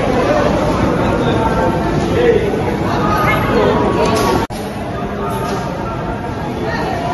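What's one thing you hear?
A crowd of men chants together in a large room.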